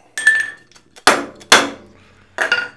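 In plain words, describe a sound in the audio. A hammer taps sharply on metal.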